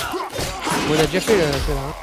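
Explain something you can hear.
A sword clangs against a shield.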